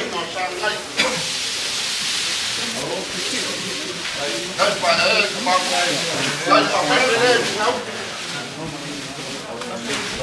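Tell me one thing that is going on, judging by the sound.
A large woven mat rustles as it is unfolded and shaken out.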